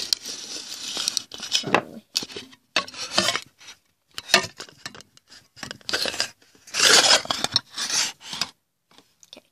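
Rustling and bumping noises come from a phone being handled close up.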